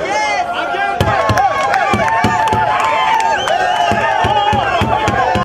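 A crowd of men shout and argue loudly.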